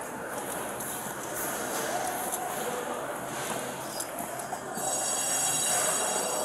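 Footsteps sound on a hard floor in a large echoing hall.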